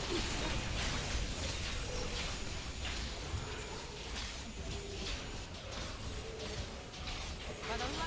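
Skeleton enemies clatter and shatter as they are struck.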